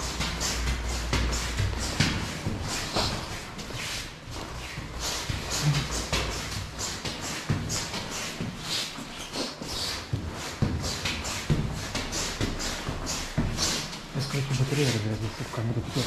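Footsteps tread quickly on stone stairs in an echoing stairwell.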